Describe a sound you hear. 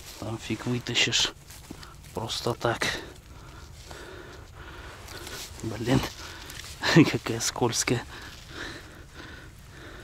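Dry grass rustles as a fish is handled on the ground.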